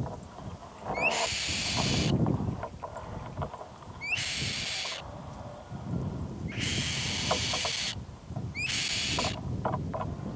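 A bird chick hisses in repeated harsh bursts, close by.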